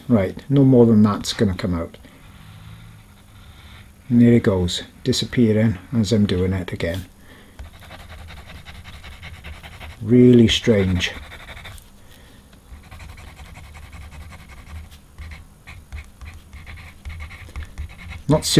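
A paint marker scratches softly on paper.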